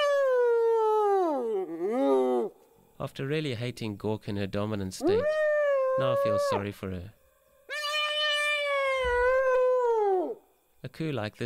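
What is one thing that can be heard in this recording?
Hyenas give long rising and falling whoops close by.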